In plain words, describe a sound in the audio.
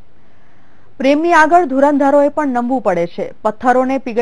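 A young woman speaks clearly and steadily into a microphone.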